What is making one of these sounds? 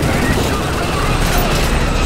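A helicopter's rotors thump and roar overhead.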